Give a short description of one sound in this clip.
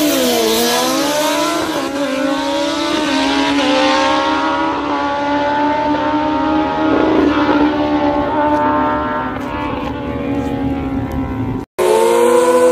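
Motorcycle engines roar as the bikes speed away down a track.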